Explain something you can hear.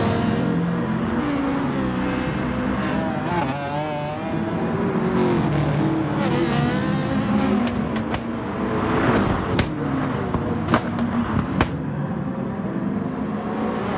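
Racing car engines roar loudly, their pitch rising and falling.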